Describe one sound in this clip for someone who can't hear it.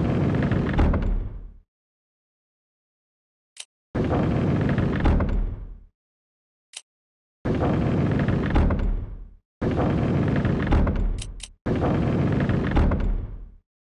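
Heavy panels rumble and grind as they turn, in several bursts.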